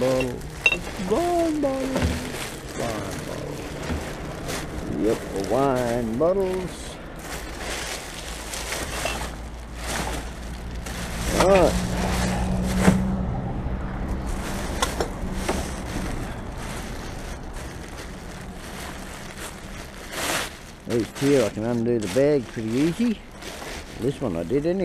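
Glass bottles clink together.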